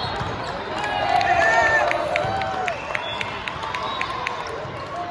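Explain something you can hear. Young men shout and cheer loudly nearby.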